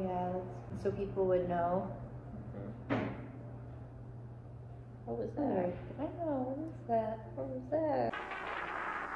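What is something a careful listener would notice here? A teenage girl talks casually close by.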